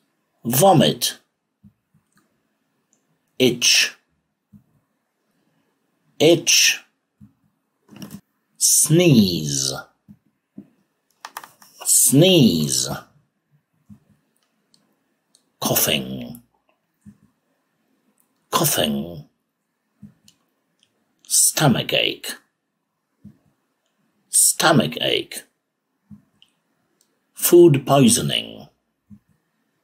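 A middle-aged man says single words slowly and clearly into a microphone, with pauses between them.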